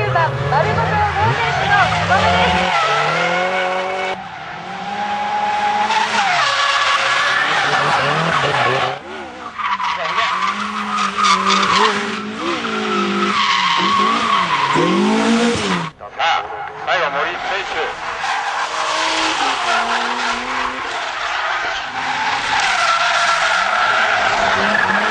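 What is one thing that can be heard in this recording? Tyres squeal loudly on tarmac.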